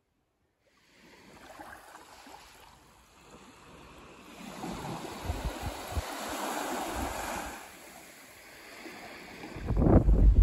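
Small waves wash gently onto a sandy shore.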